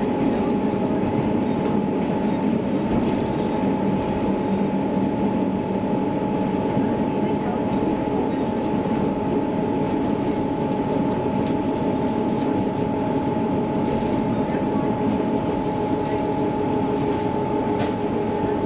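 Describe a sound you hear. A train's motor hums with a steady, high whine.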